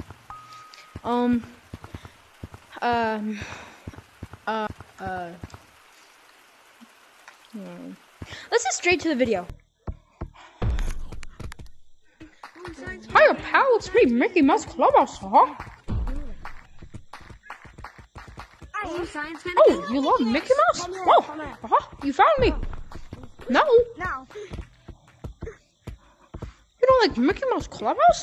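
A child talks excitedly over an online voice chat.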